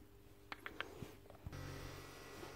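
Small metal parts clink softly as they are handled.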